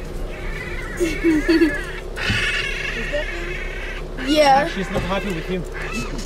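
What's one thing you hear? Baboons grunt and squeal nearby.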